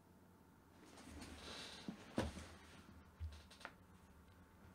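A hand knocks and bumps against a desk.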